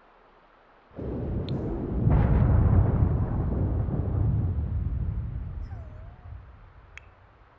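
Thunder rumbles loudly and slowly fades.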